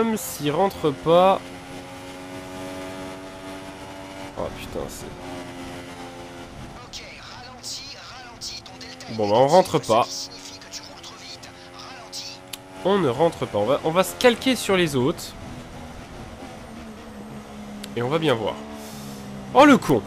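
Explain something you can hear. A racing car engine whines at high revs, dropping and climbing in pitch as it shifts gears.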